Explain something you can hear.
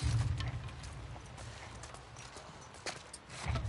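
Soft footsteps shuffle slowly over a hard floor.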